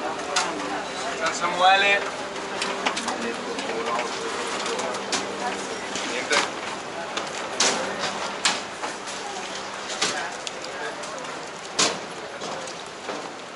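A crowd of adults talks nearby.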